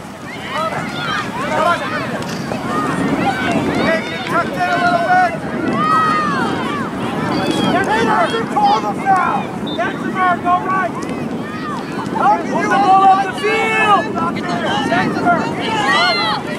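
A crowd of spectators and young players shout and call out across an open field.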